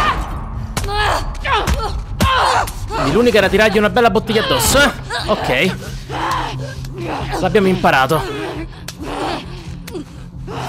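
Blows and scuffles thud during a fight.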